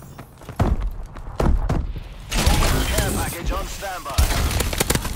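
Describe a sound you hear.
Gunshots fire in quick loud bursts.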